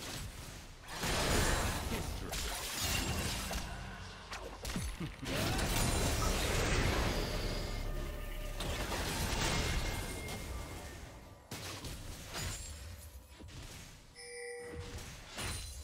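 Game spell effects whoosh, crackle and clash in a fight.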